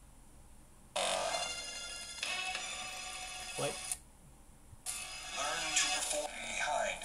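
Game music and effects play from a small handheld speaker.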